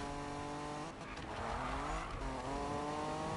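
Tyres screech as a car drifts around a corner.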